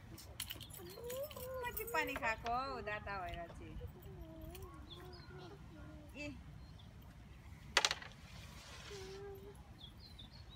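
A woman talks calmly nearby, outdoors.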